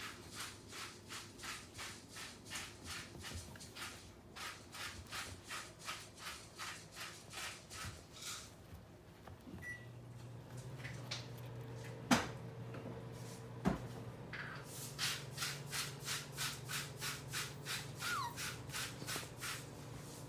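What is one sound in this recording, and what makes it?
Puppies scamper and scuffle on a wooden floor.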